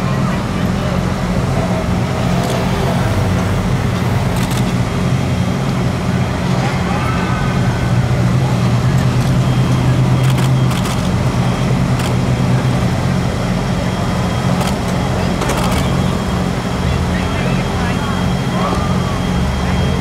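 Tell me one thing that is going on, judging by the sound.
A golf cart hums as it drives off slowly.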